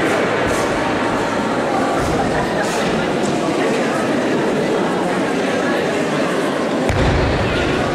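Feet shuffle and stamp on a wooden floor.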